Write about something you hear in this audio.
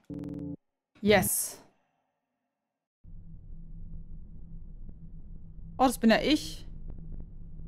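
A young woman speaks close into a microphone.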